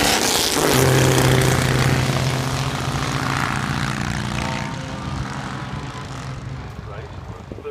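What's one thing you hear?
Racing car engines roar loudly past and fade into the distance.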